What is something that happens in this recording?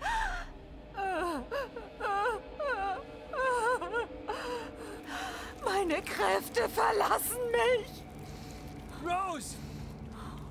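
A young woman speaks in a strained, anguished voice up close.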